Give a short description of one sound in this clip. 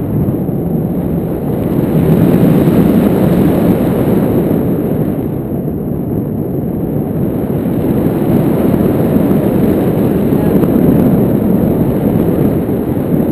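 Wind rushes and buffets loudly against a microphone.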